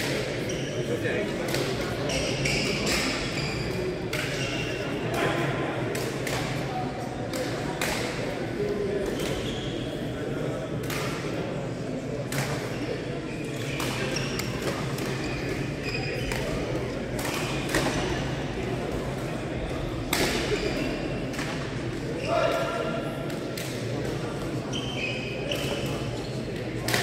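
Young men call out to each other across a large hall.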